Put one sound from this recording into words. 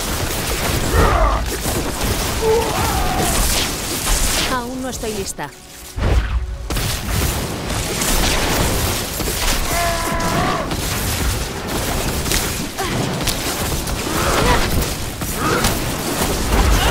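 Monsters grunt and roar.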